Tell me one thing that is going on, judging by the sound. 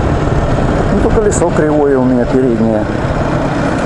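A motorcycle engine revs briefly up and down.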